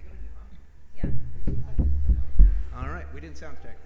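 A double bass plucks deep notes.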